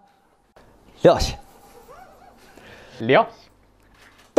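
Men laugh together.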